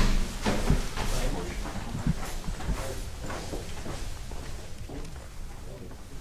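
Footsteps walk along a corridor.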